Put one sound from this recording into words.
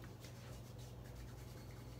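A man rubs his hands together.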